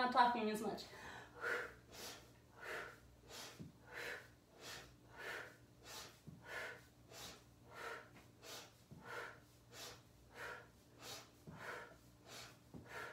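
A woman breathes out sharply in a steady, quick rhythm.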